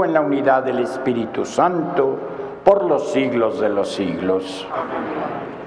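A man speaks calmly over a loudspeaker in an echoing hall.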